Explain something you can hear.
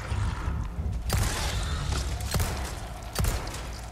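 A monster groans and growls.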